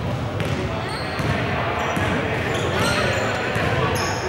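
A crowd of young spectators chatters nearby.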